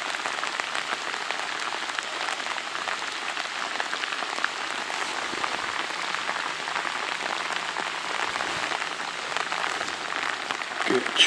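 Heavy rain patters and hisses steadily on water.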